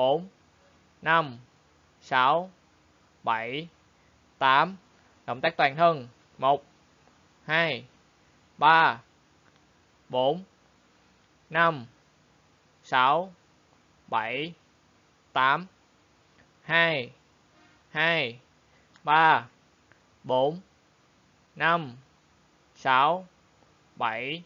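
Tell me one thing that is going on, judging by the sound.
A young man calls out short, rhythmic counts, one every second or so.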